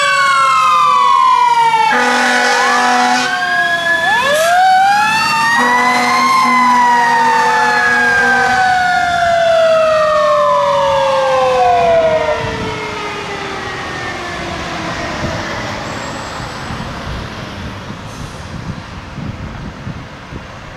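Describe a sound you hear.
A heavy truck engine rumbles as it drives off.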